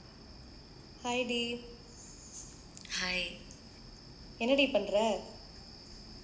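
A young woman speaks briefly through a small speaker.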